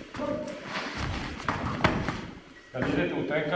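A body falls onto a padded mat with a dull thud.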